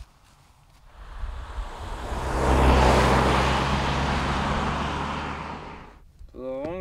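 A car passes along a road.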